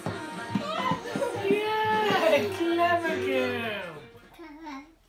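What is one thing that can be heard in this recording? A man sings loudly and playfully close by.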